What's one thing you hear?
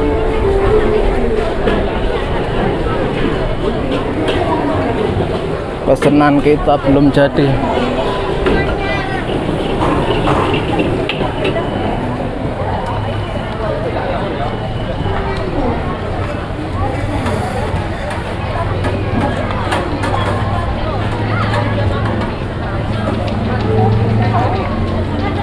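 A busy crowd murmurs and chatters all around.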